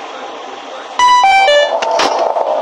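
A descending electronic chime sounds as the power cuts out.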